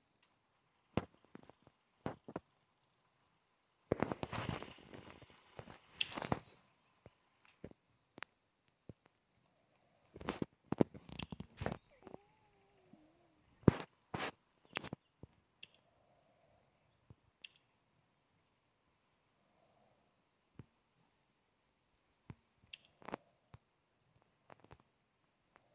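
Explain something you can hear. Short menu clicks and chimes sound now and then.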